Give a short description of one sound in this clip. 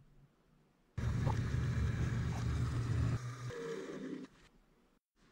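A drill press whirs as it runs.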